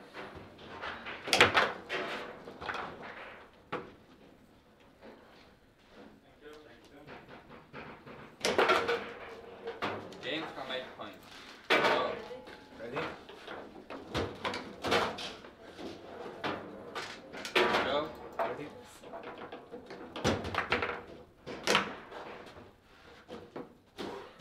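Plastic handles rattle as players spin and slide the rods.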